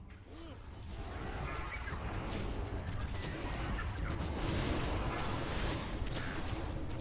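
Spell effects whoosh and crackle in a fast battle.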